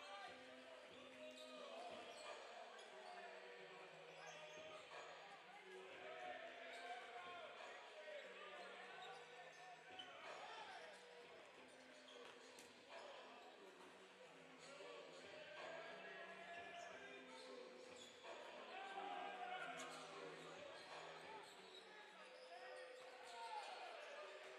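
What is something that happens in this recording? Basketballs bounce on a wooden court in a large echoing gym.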